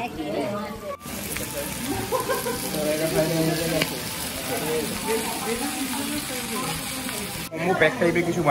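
A hot platter sizzles loudly.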